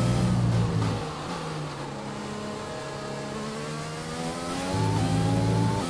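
A racing car engine slows down to a low drone through a corner, then revs up again.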